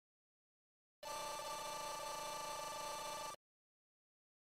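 A steady electronic tone rings out from a video game.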